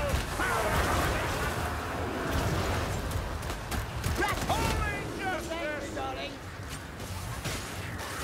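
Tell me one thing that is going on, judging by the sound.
A flaming gun fires in bursts.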